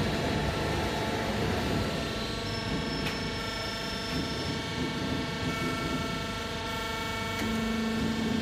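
Sheet metal scrapes and rattles as it moves through rollers.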